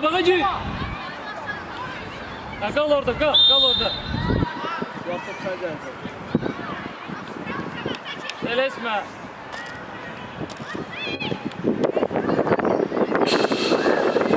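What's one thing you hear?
Young players shout and call out.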